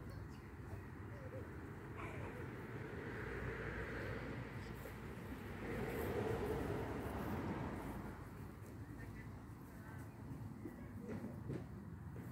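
Footsteps scuff on grass and dirt.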